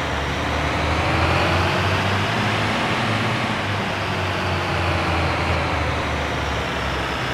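A diesel fire engine drives along, its engine droning low.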